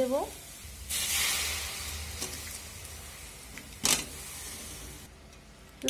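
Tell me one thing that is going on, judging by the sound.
Chopped vegetables drop into a pot.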